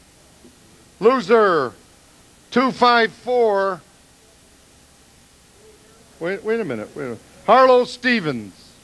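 An elderly man speaks slowly into a microphone, in short bursts with pauses.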